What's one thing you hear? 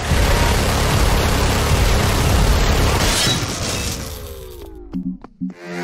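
Electric blasts crackle and roar loudly.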